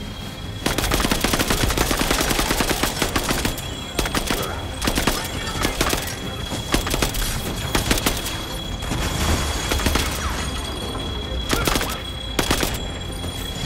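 Energy blasts explode with sharp bursts.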